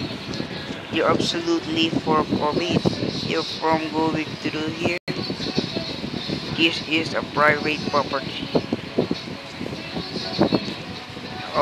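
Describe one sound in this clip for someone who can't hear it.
A young boy talks close to a microphone.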